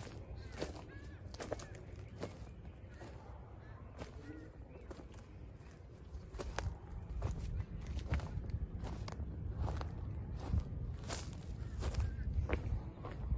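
Footsteps crunch on dry wood chips outdoors.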